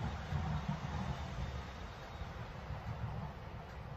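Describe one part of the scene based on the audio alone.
A car door opens nearby.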